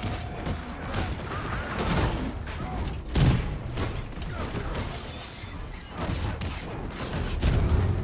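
Sparks crackle and zap.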